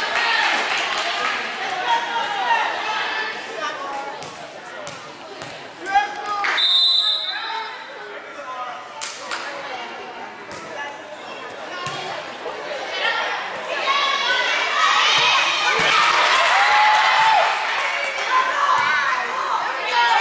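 Young women and girls shout and cheer in a large echoing gym.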